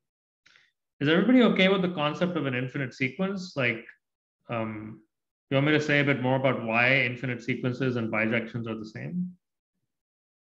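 A man speaks calmly into a microphone, as if lecturing over an online call.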